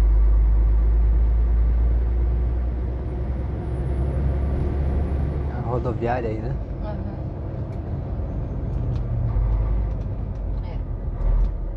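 Tyres rumble on asphalt.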